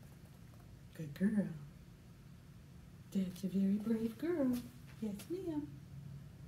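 A woman speaks softly and brightly to a dog nearby.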